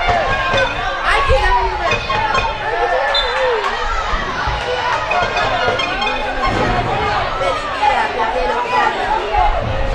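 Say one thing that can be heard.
Women and girls nearby chatter and call out loudly across an open outdoor field.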